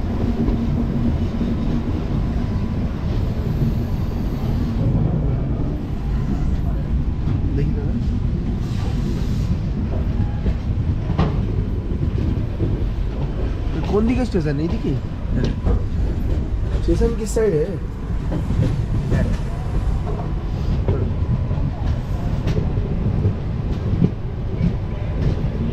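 A train rumbles steadily along the tracks, with wind rushing past.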